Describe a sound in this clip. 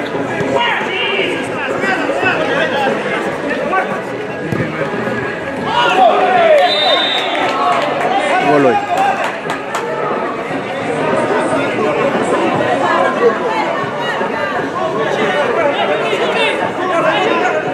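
A crowd of spectators shouts and chatters throughout.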